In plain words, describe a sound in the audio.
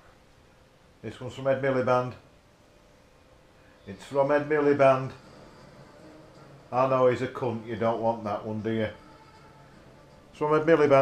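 A man talks calmly and playfully close by.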